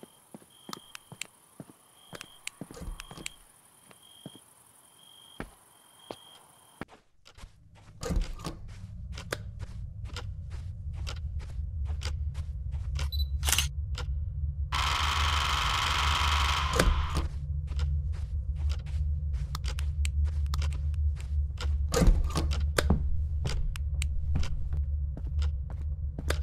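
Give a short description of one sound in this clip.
Footsteps thud steadily on a wooden floor and stairs.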